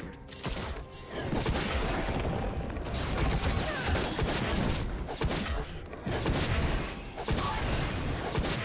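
Video game combat effects whoosh, clash and crackle.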